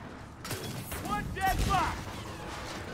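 Gunfire bursts out in rapid shots.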